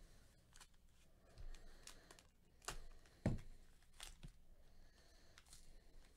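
A plastic wrapper crinkles as gloved hands handle it.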